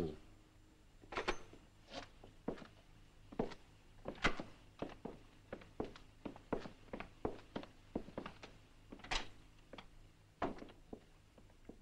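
Footsteps walk away across a bare floor in an empty room.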